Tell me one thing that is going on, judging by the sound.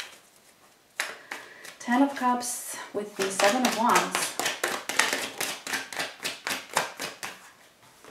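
Cards flick and shuffle in a person's hands.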